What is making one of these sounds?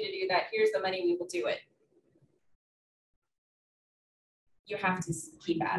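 A woman speaks calmly, heard across a room through a microphone, with pauses.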